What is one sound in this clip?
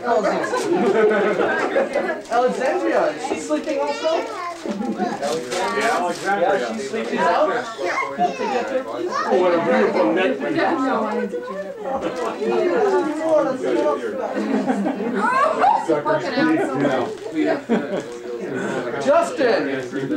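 Small children talk and chatter in high voices.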